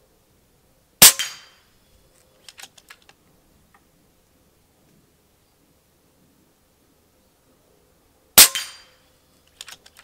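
A rifle fires loud, sharp shots outdoors, each followed by a brief echo.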